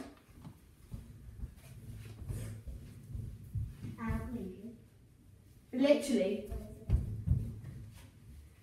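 Footsteps thud on a hard floor close by.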